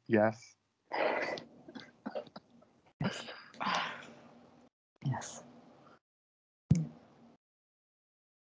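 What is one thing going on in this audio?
A woman laughs over an online call.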